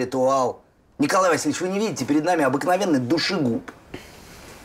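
An older man speaks sharply and with scorn.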